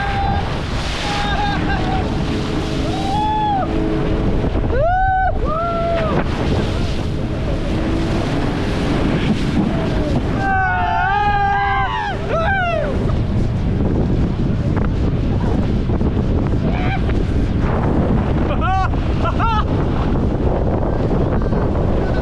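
Wind roars loudly against a microphone outdoors.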